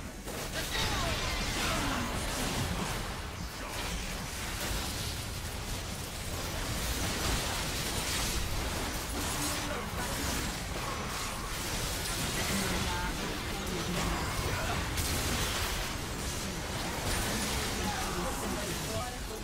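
Game spells blast and crackle in a fast fight.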